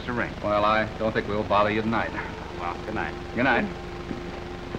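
A man talks with animation, heard through an old, hissing recording.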